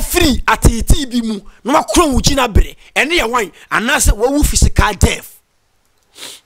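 A young man speaks animatedly and loudly into a close microphone.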